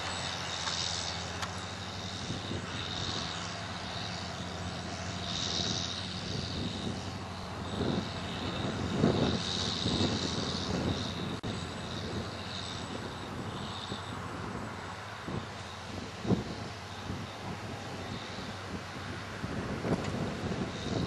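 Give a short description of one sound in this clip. A large harvester engine rumbles steadily nearby.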